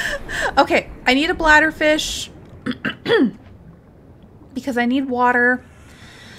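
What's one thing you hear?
A young woman speaks animatedly into a microphone, in a high-pitched voice.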